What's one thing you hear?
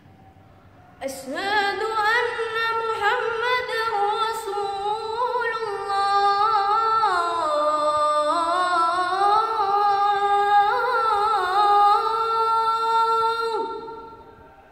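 A boy chants loudly in a long, wavering melody, with an echo from hard walls.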